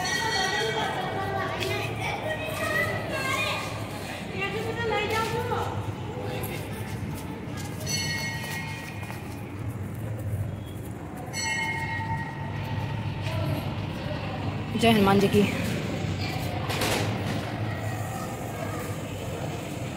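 Men and women chatter in the background outdoors.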